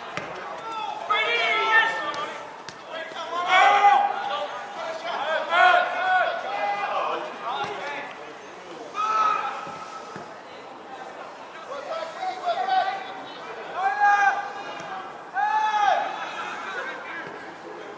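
Young players shout to each other across an open pitch outdoors.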